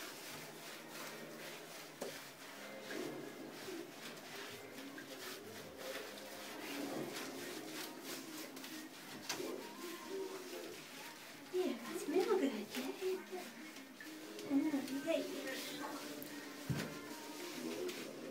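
Wet fur squelches as hands scrub a dog.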